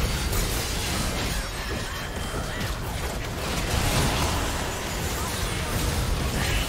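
Magic blasts and clashing weapons crackle and burst in a fast video game fight.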